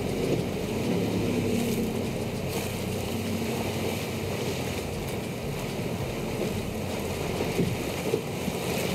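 A boat engine roars steadily at high speed.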